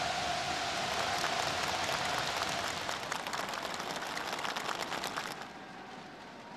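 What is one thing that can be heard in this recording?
People applaud with quick clapping.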